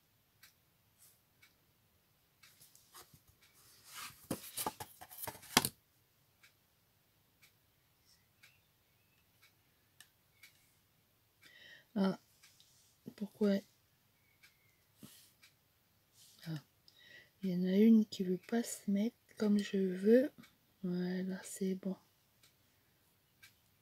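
Tweezers tap and scrape lightly on paper.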